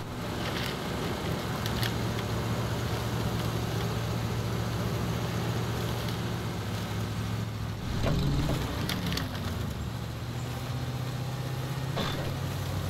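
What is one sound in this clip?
An off-road engine rumbles low and steady as a truck crawls through mud.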